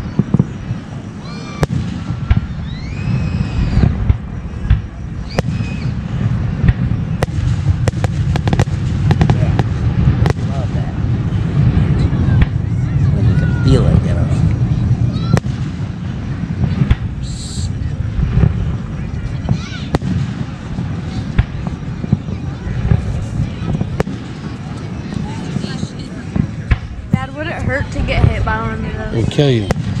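Fireworks burst with loud bangs, some far off and some nearer.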